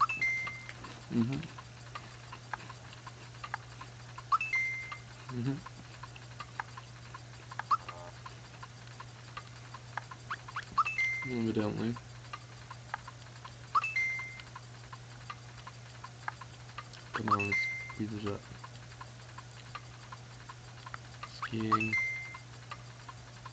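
A young man speaks short, quiet remarks close to a microphone.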